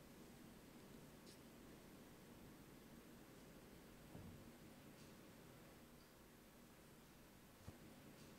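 Footsteps shuffle softly across a hard floor.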